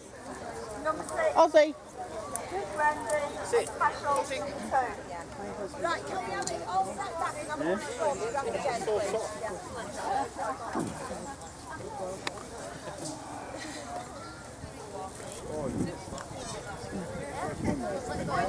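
People murmur and chatter nearby.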